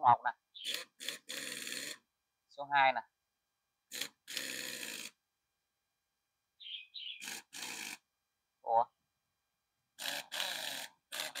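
Short bursts of compressed air hiss from an air tool.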